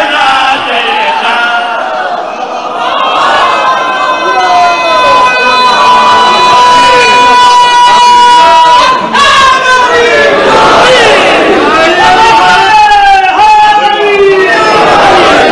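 A crowd of men chants together in a large echoing hall.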